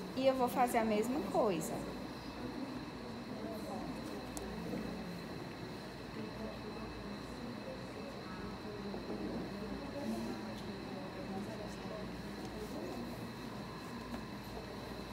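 Several women talk quietly in the background.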